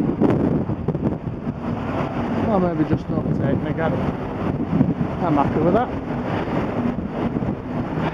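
Wind buffets and rumbles loudly outdoors.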